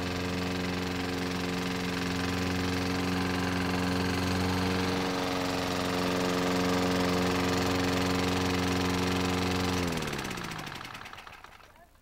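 A petrol lawn mower engine runs with a steady, loud drone, then slows and dies away.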